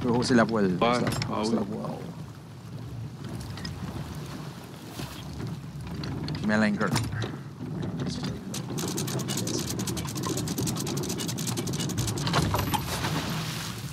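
Waves splash and wash against a wooden ship's hull.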